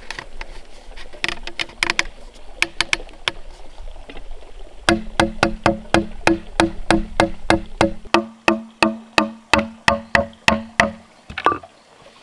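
A wooden stick pounds rhythmically inside a hollow bamboo tube, with a resonant knocking.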